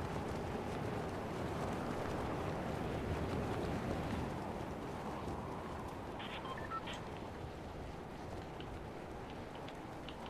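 Wind rushes past in a steady roar during a fall through the air, easing slightly toward the end.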